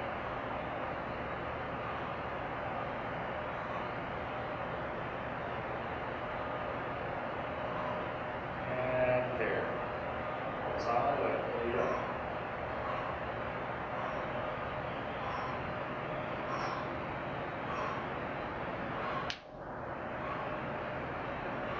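A weight machine clinks softly with each pull.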